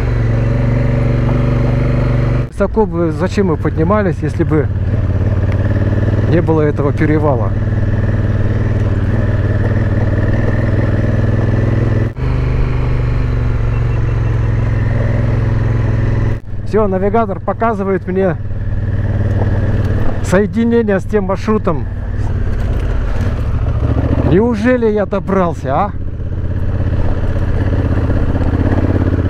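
A motorcycle engine hums steadily at low revs.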